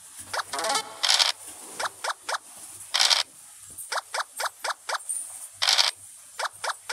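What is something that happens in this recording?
Game dice rattle as they roll.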